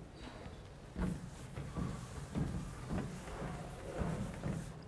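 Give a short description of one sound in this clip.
A felt eraser wipes across a blackboard.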